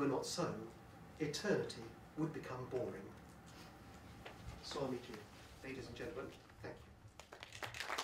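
An elderly man speaks through a microphone, pausing between phrases.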